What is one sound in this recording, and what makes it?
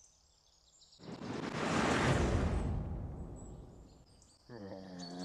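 A whooshing game sound swells and fades.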